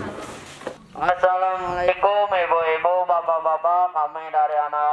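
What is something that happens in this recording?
A teenage boy speaks with animation into a handheld microphone.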